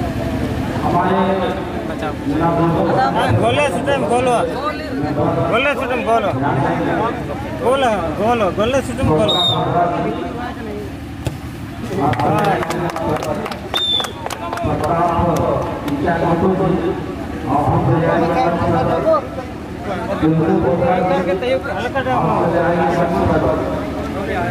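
A crowd of young men and boys chatters and shouts outdoors.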